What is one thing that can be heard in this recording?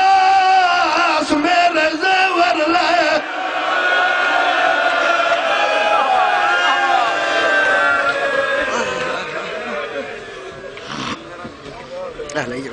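A man chants loudly through a loudspeaker.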